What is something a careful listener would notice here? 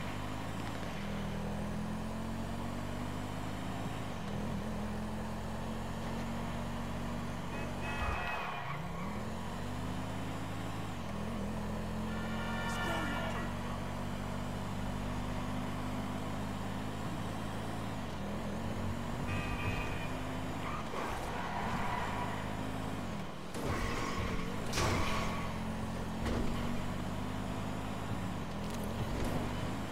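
A car engine hums steadily, revving up and dropping as the car shifts gears.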